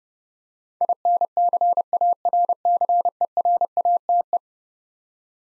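A Morse code key taps out a fast run of steady, high beeps.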